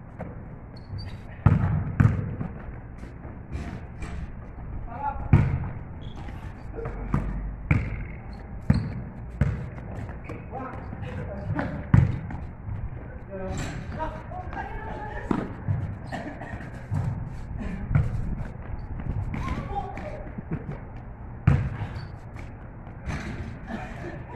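A basketball bounces on hard pavement.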